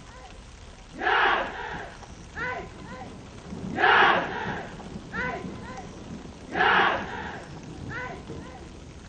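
A group of young men shout a chant loudly in unison.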